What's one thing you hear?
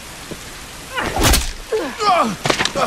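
A man grunts and struggles.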